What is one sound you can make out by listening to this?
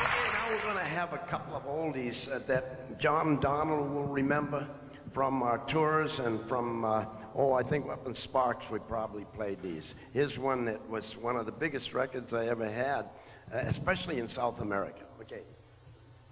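An elderly man speaks with animation through a loudspeaker in a large echoing hall.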